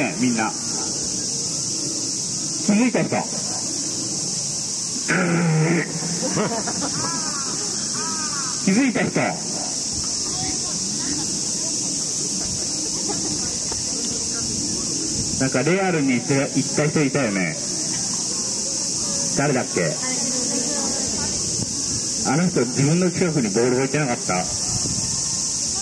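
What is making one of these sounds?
A man speaks loudly outdoors, calling out in short bursts.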